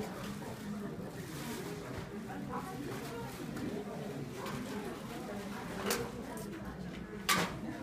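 Women chatter at a murmur indoors nearby.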